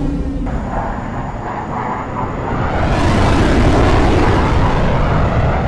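Jet engines roar loudly overhead, growing louder.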